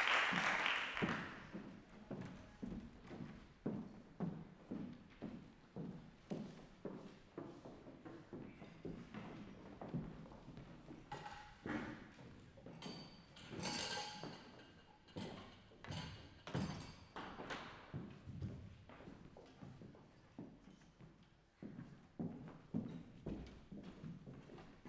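Footsteps knock on a hollow wooden stage.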